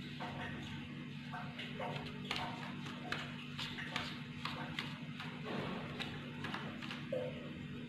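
A knife presses and pats into soft clay.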